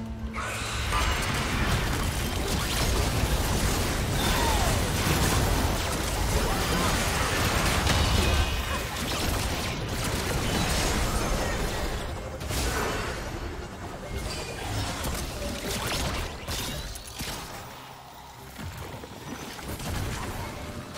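Magic spells whoosh, crackle and clash in a busy video game battle.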